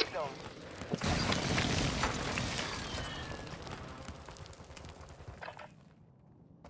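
A loud explosion roars and rumbles, then slowly fades.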